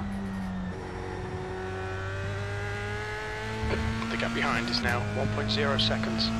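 A racing car engine whines steadily at high revs.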